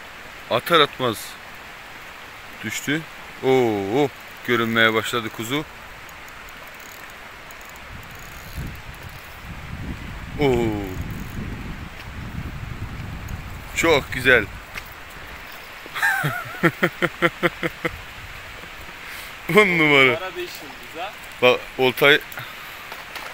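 A young man talks with excitement close by.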